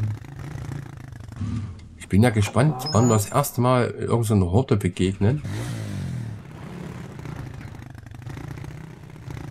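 An off-road quad bike engine idles and rumbles steadily.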